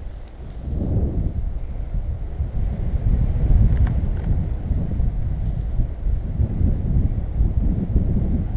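Wind rushes and buffets against the microphone outdoors.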